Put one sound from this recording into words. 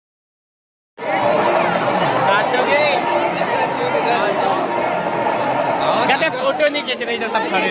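Several young men talk loudly and excitedly close by.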